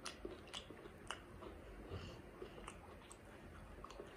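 Crispy fried food crackles as fingers break it apart.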